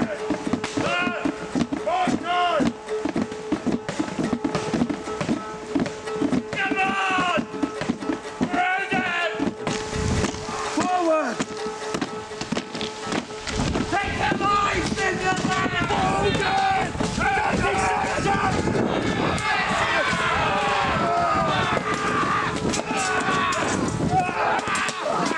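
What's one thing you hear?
Wooden shields and weapons knock and clash together.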